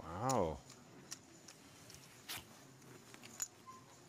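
Poker chips click softly together.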